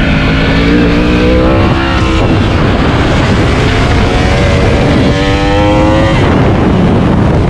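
Wind roars loudly past the rider.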